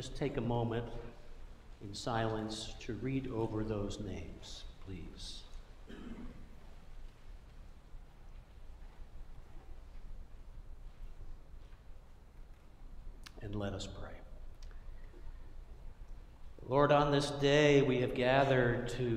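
An older man speaks calmly through a microphone in a large echoing hall, pausing between phrases.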